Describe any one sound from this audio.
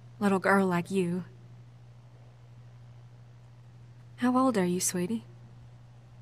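A woman speaks gently and warmly, close by.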